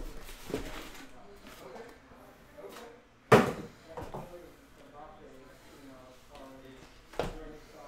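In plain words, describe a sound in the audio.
Boxes knock softly as they are stacked.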